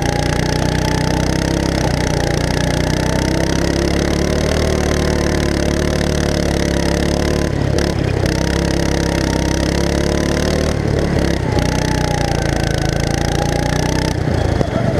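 A small kart engine buzzes loudly and close, its pitch rising and falling with speed.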